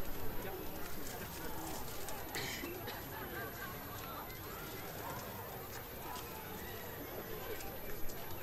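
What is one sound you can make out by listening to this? Footsteps shuffle on paving.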